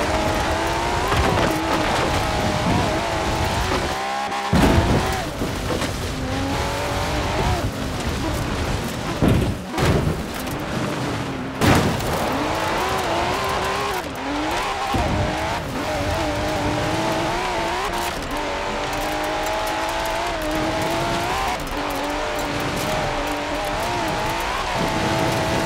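A sports car engine roars loudly, its pitch rising and falling as the car speeds up and slows down.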